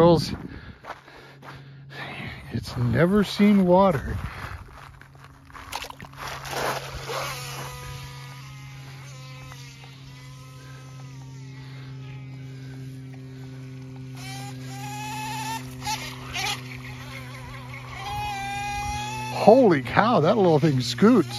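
A small model boat motor whines steadily, rising in pitch as it speeds up across the water.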